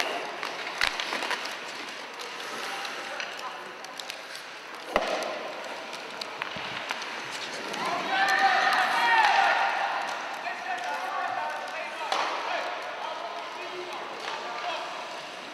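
Sled blades scrape across ice.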